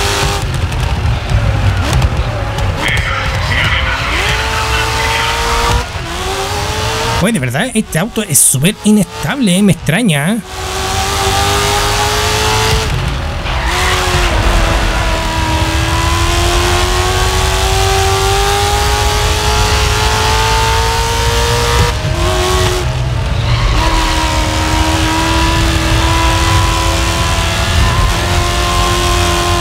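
A racing car engine roars and climbs in pitch through gear changes.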